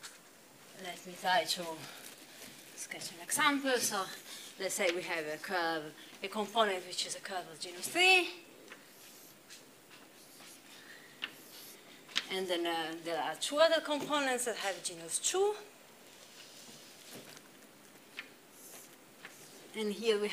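A young woman lectures calmly, heard through a microphone.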